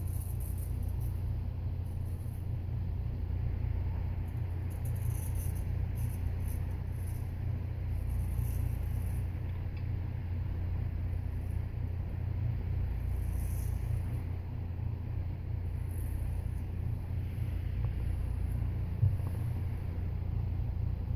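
A straight razor scrapes across stubble close by.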